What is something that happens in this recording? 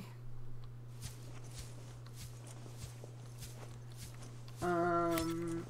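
Footsteps tread softly through grass.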